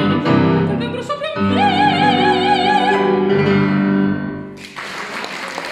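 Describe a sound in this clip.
A woman sings with a strong vibrato.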